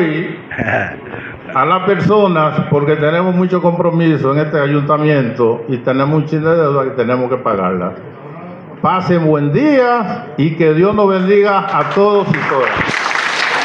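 A man speaks loudly into a microphone with animation, echoing in a hall.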